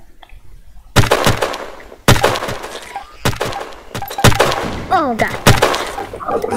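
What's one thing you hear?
A sniper rifle fires loud, sharp shots one after another.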